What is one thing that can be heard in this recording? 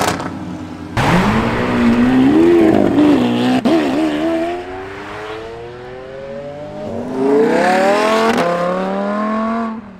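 A sports car accelerates hard past, its engine roaring up through the gears.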